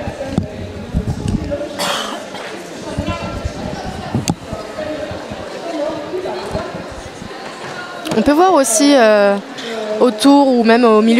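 Several women talk among themselves in a large echoing hall.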